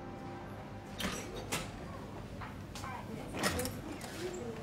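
A door opens with a knock and clatter.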